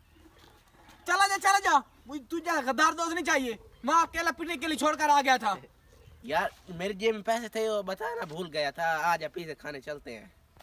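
A young man sings nearby.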